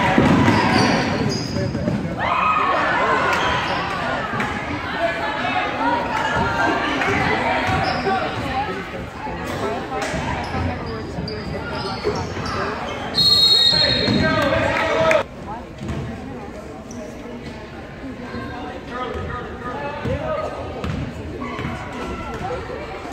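Sneakers squeak on a wooden floor in an echoing gym.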